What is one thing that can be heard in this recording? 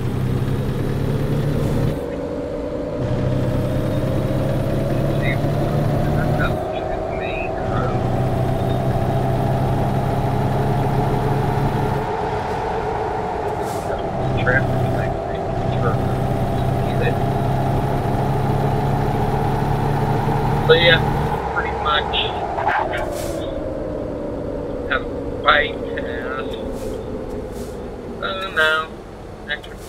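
A truck's diesel engine rumbles and rises in pitch as it speeds up, then winds down as it slows.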